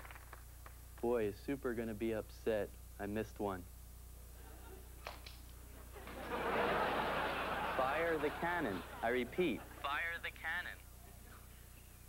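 A man speaks into a walkie-talkie, close by.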